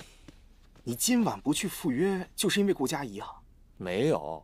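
A young man speaks with animation, up close.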